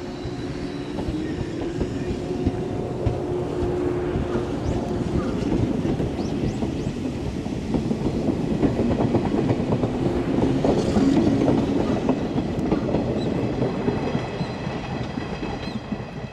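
A train's wheels clatter and rumble loudly on the rails as it passes close by.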